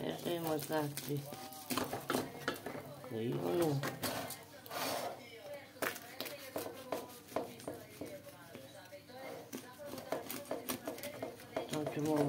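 A knife scrapes against a metal pan.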